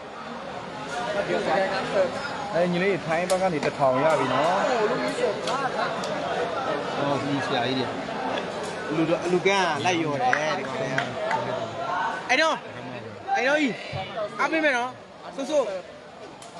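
Young men talk and shout excitedly close by.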